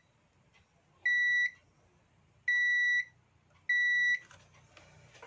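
A multimeter gives short, steady high beeps three times.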